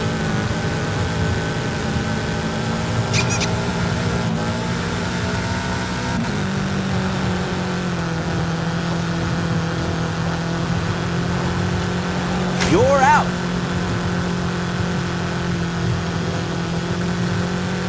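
A car engine hums steadily at low speed.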